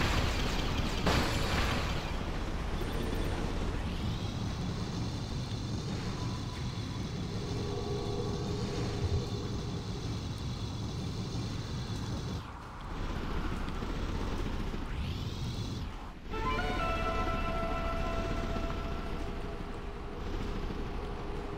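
A game vehicle's engine hums and whooshes steadily.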